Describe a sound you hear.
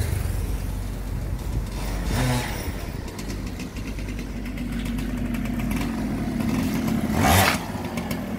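A motorbike engine hums as it approaches and passes close by.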